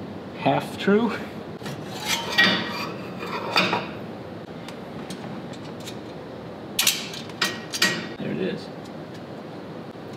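A metal tool clinks and clicks against metal parts.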